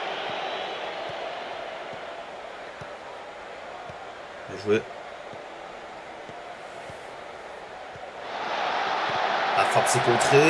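A stadium crowd murmurs and roars, swelling loudly near the end.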